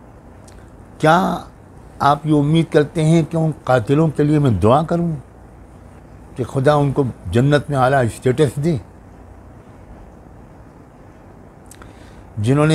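An elderly man speaks calmly and close to a microphone, in short phrases with pauses.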